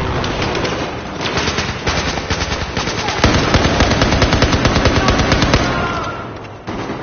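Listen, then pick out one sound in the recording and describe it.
Rapid bursts of automatic gunfire crack out.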